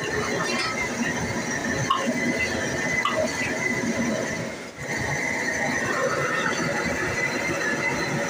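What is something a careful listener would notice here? A gas burner roars steadily under a wok.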